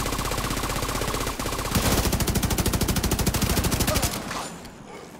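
A rifle fires in rapid, rattling bursts.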